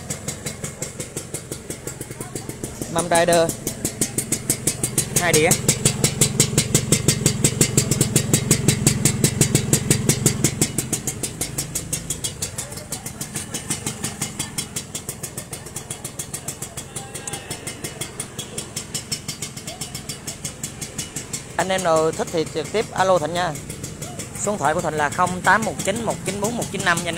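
A small motorcycle engine idles close by with a rapid, even putter.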